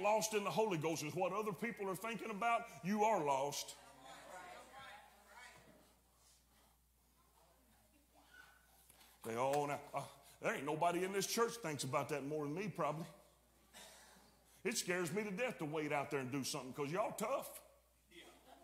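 A middle-aged man preaches with animation through a microphone in an echoing hall, with long pauses.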